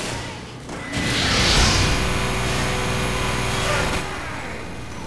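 A sparkling, whooshing burst of magic plays as a character respawns.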